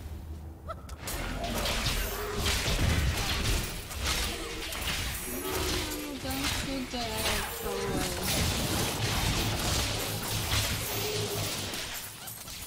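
Game combat effects crackle and clash loudly.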